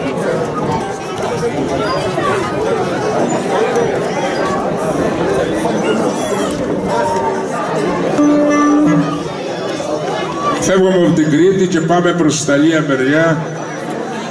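An accordion plays along.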